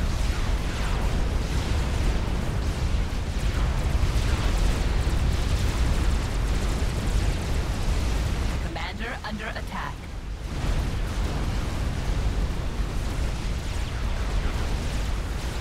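Laser weapons zap and crackle.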